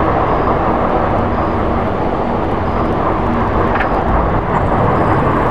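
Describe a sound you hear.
A distant aircraft engine drones steadily.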